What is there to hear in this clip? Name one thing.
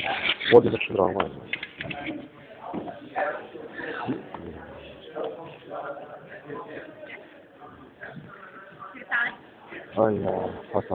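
A middle-aged man talks close to a phone microphone.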